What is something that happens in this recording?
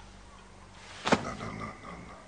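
A man claps his hands together once.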